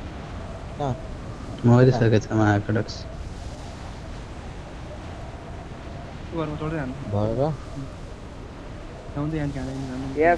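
Wind rushes past a skydiver in free fall.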